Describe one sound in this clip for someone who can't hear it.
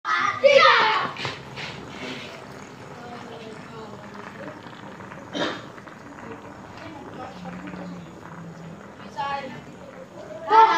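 Wooden spinning tops whir and hum on hard ground.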